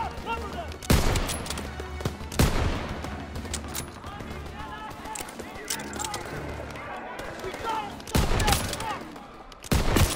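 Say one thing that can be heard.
Rifle shots crack loudly, each followed by a rolling echo.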